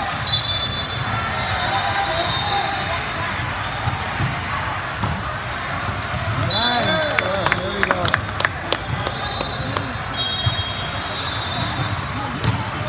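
A crowd of players and spectators chatters and calls out in the background.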